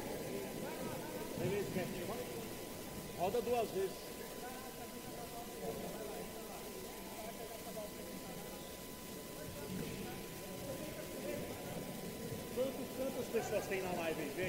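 A ball thuds off players' feet on a hard court.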